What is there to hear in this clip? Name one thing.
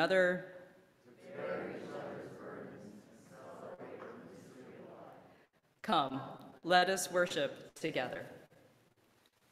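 A woman speaks calmly into a microphone in an echoing hall.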